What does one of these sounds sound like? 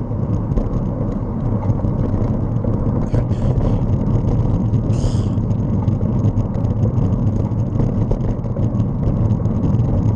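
Wind rumbles steadily against a moving microphone.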